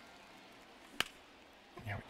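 A bat cracks against a ball.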